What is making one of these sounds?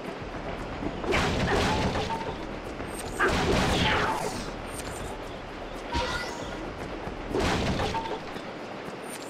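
Punches and whooshes from a video game fight burst out in loud rushes.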